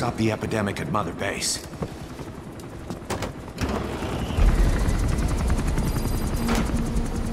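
A helicopter's rotors and engine roar steadily from inside the cabin.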